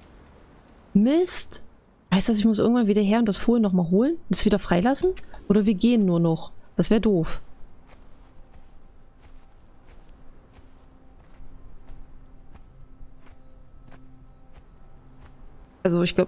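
A young woman talks with animation close to a microphone.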